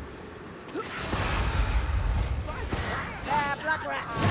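A fiery blast booms and crackles.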